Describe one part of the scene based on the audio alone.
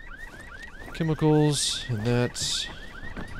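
A bright electronic chime sounds twice.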